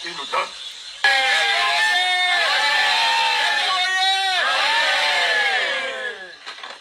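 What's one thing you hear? A crowd sings and cheers loudly through a small phone speaker.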